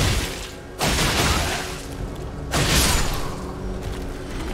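A blade slashes and strikes flesh with heavy whooshing hits.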